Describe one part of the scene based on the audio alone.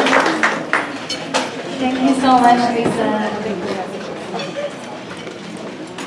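A young woman speaks into a microphone over a loudspeaker.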